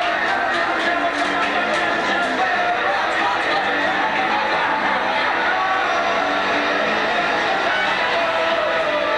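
Cymbals crash and drums pound in a fast beat.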